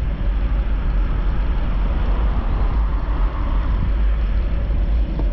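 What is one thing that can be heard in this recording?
A truck drives past on a nearby road.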